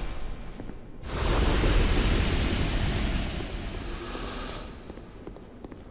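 A magical whoosh swells and fades as an enemy is defeated.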